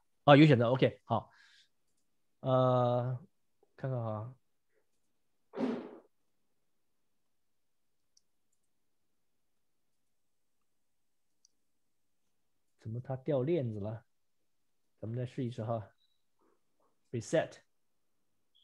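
A man speaks calmly into a close microphone, in short phrases with long pauses.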